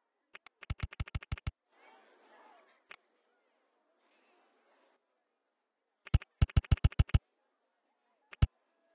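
A rapid series of short clicks sounds in bursts.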